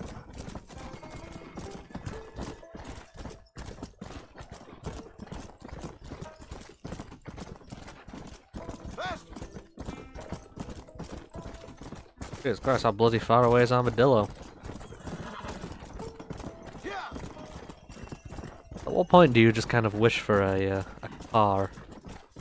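A horse's hooves thud steadily on a dirt trail.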